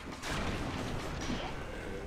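A sword strikes a stone wall with a metallic clang.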